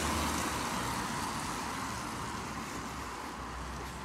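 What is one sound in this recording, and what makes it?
A car drives past on a nearby road.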